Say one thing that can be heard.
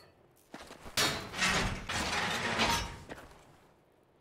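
A heavy metal door grinds and rumbles open.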